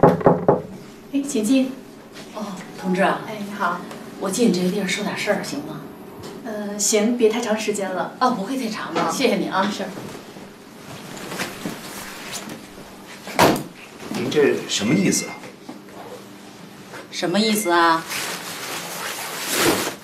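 A middle-aged woman speaks firmly.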